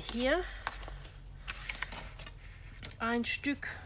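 Paper rustles and slides across a table.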